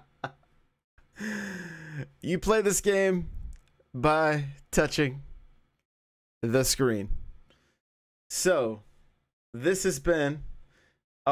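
A man talks with animation, close to a headset microphone.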